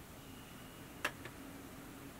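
A glass is set down on a table with a sharp knock.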